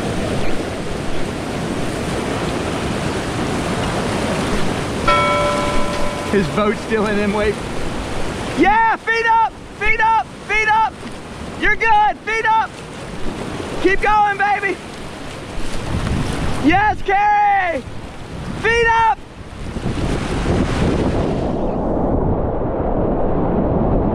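A kayak paddle splashes into the water.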